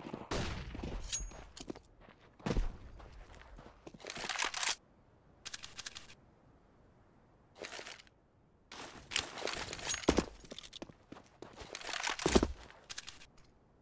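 Footsteps run on stone pavement in a video game.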